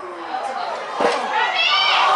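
A soccer ball is kicked with a dull thump.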